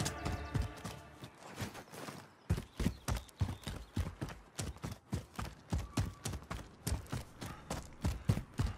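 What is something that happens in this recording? Footsteps thud quickly on rocky ground.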